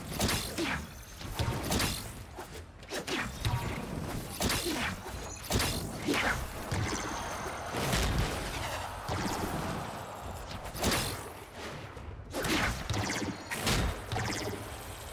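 Energy blasts zap and boom.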